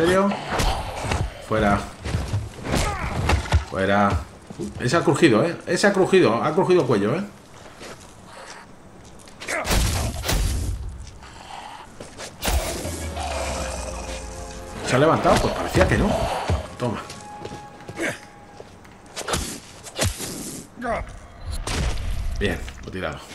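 Heavy blows thud and squelch into flesh.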